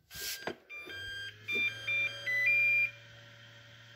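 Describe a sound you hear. A charger beeps several times.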